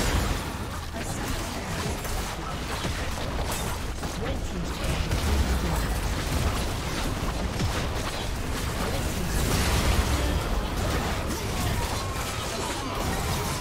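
Game spell effects and attacks crackle and boom in a dense clash.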